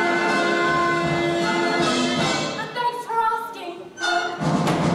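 A young man sings loudly in a large hall.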